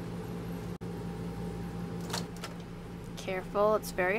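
A microwave door clicks open.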